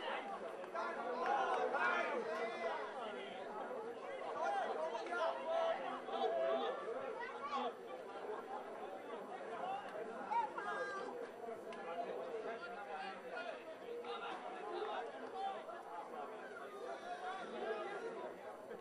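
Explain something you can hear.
Young men shout and call out to each other outdoors across an open field.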